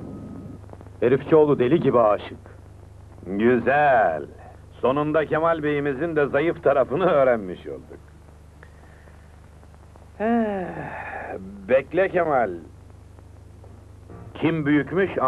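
A man speaks firmly nearby.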